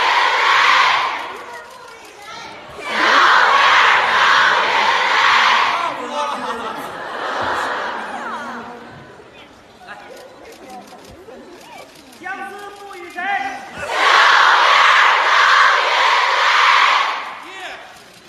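A large audience cheers loudly in an echoing hall.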